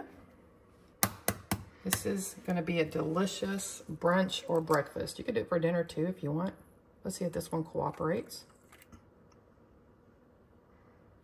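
An eggshell cracks against a hard edge.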